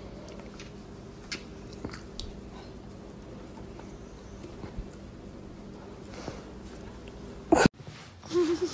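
A small dog growls playfully.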